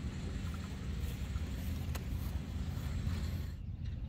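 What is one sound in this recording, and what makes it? A golf cart drives across grass.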